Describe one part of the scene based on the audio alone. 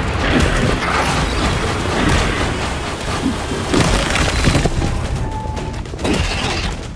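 Deep rumbling booms sound throughout.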